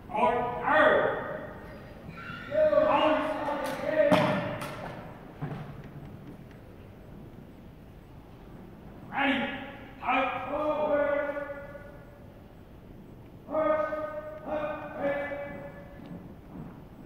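A young woman shouts drill commands in long drawn-out calls, echoing in a large hall.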